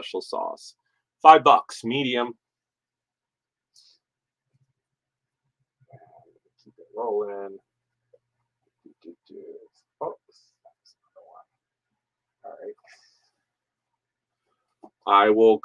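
Cloth rustles as a shirt is handled.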